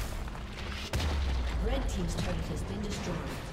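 A tower crumbles with a deep rumble.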